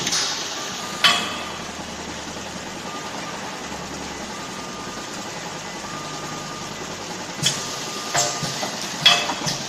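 Metal parts of a packing machine clank and knock sharply.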